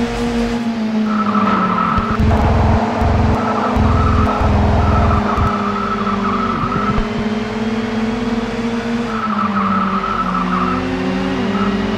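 Car tyres squeal while cornering.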